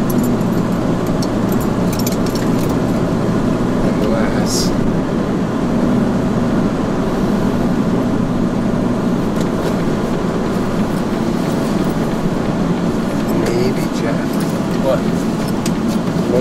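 A car engine hums steadily with road noise inside the cabin.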